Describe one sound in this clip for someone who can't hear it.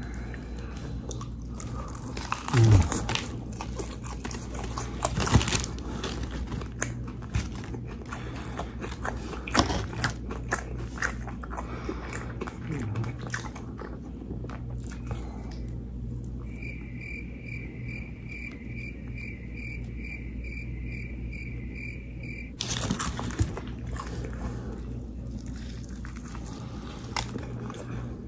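Crispy fried chicken crunches and crackles.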